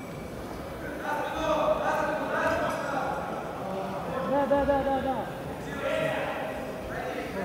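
A man shouts from the side of the mat, in a large echoing hall.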